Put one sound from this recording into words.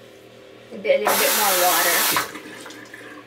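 Water runs from a tap.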